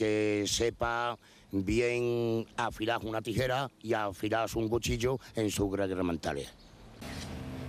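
A middle-aged man speaks calmly into a microphone outdoors.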